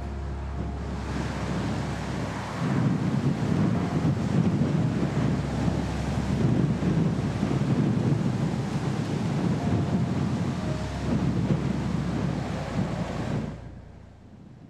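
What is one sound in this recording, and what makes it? Dry cornstalks rustle and crackle as a combine harvester cuts through them.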